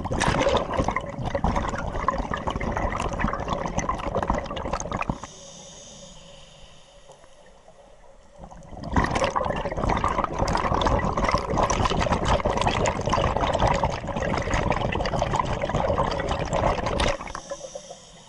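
Scuba air bubbles gurgle and rumble loudly up close underwater.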